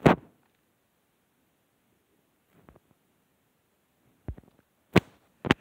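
Short game menu clicks sound as options are selected.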